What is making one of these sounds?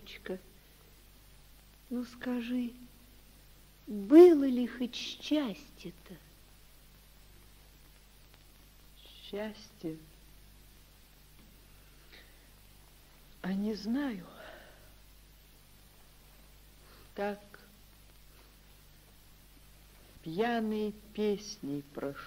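Tape reels turn with a soft, steady whir.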